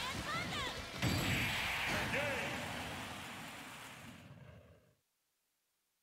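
A heavy blow lands with a loud booming crash and a ringing burst of effects.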